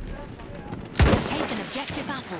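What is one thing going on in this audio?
A bolt-action rifle fires a single shot.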